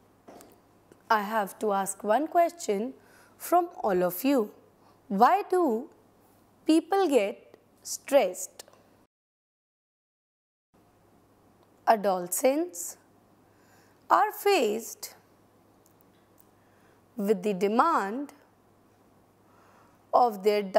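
A woman speaks calmly and clearly into a microphone.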